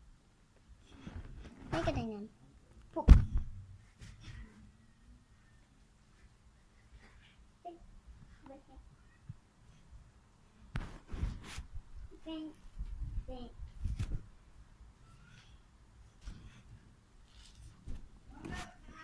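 A young girl speaks close by, now and then.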